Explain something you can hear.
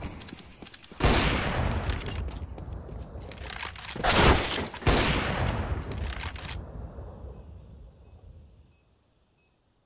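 A sniper rifle fires loud, booming shots that echo away.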